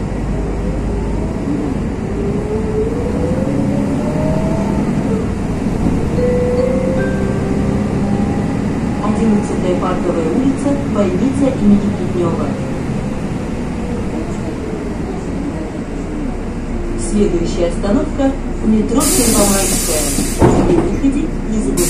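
Rain falls steadily on a wet street.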